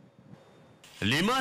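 An elderly man speaks into a microphone with a formal tone.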